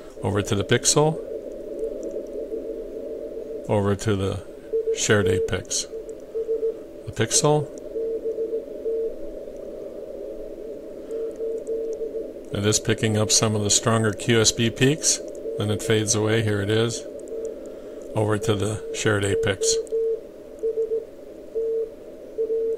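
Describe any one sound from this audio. A radio receiver plays Morse code beeps over a hum of static.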